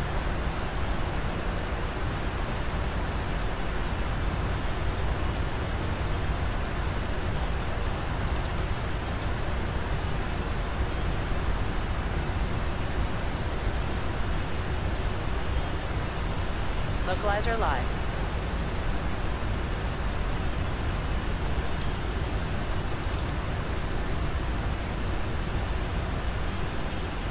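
Jet engines roar steadily in the cockpit.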